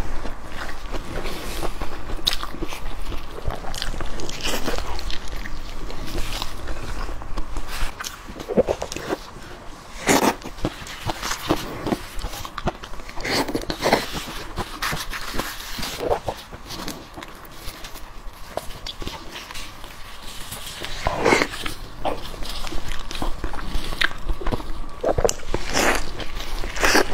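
A woman chews and slurps food loudly, close to a microphone.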